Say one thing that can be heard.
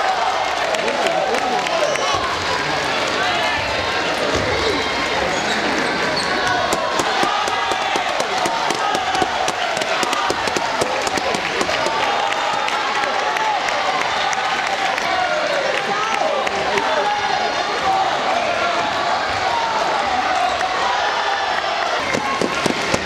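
A ball clicks sharply back and forth on a table and paddles.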